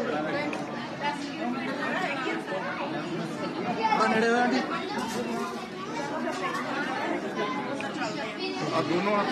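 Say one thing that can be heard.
A woman talks close by with animation.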